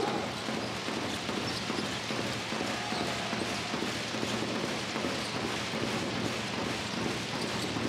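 A large indoor crowd murmurs and cheers in an echoing arena.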